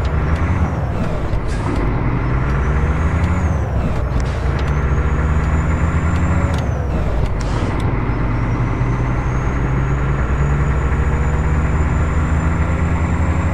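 A truck's diesel engine rumbles steadily and shifts in pitch as it changes gear.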